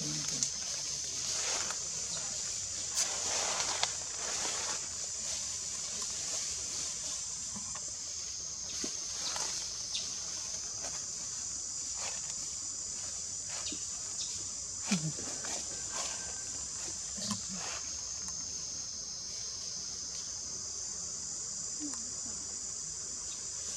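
Monkeys rustle and shuffle on dry ground.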